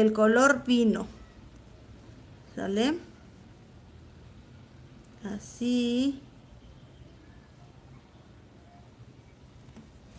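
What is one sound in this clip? A small brush softly dabs on cloth.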